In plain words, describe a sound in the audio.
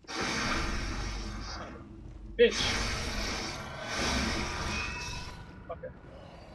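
Blades slash and strike in a fight.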